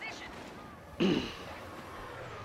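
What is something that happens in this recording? An explosion booms.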